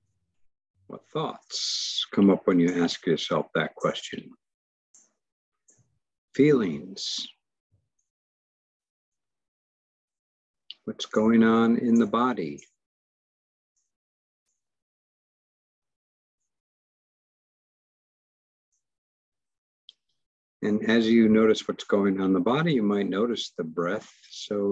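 An elderly man speaks calmly in pauses, heard through an online call.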